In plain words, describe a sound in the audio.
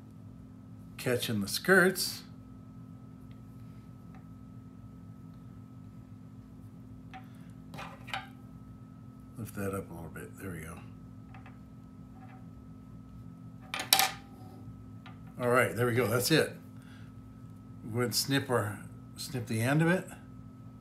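A man speaks calmly up close, in short phrases with pauses.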